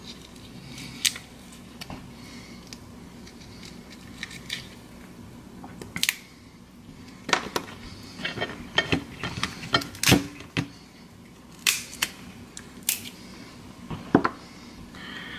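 Hands peel and crack a shell with sharp little clicks and crackles.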